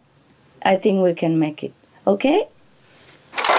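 A woman speaks cheerfully into a phone, close by.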